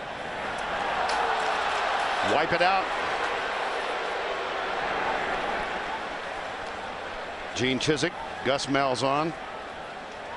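A man announces a penalty through a loudspeaker, echoing across the stadium.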